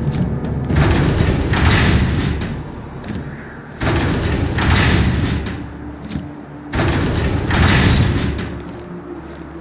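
A heavy wooden wheel grinds and scrapes over stone in several long bursts.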